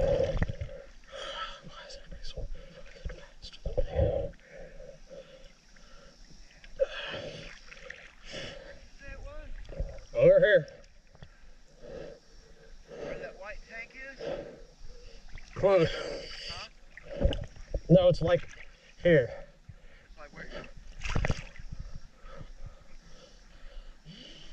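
Water splashes and sloshes close by as a swimmer strokes through it.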